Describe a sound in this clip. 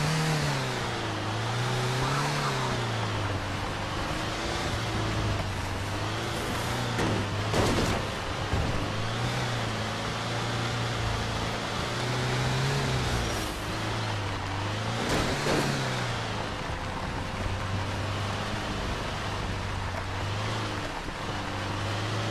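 A truck engine hums steadily, its pitch rising and falling as it climbs.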